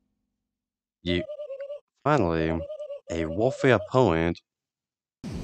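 Quick electronic blips chatter in a rapid string, like game dialogue text being typed out.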